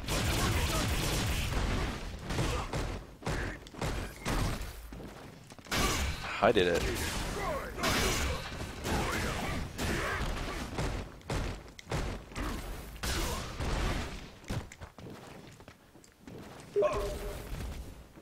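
Energy blasts burst and crackle.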